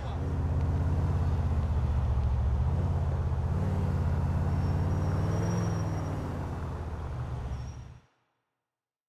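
A car engine hums steadily as it drives.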